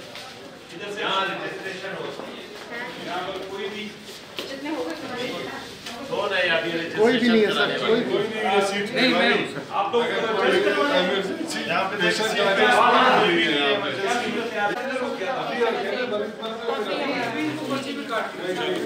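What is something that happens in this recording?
Several men talk over one another in a crowded, echoing room.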